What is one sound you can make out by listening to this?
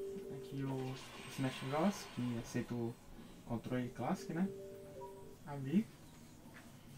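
Video game music and sound effects play from a television.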